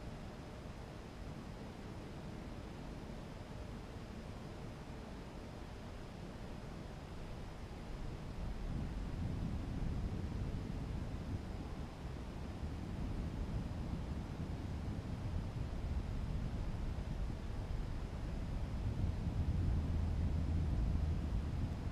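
Wind rushes and buffets steadily, growing stronger.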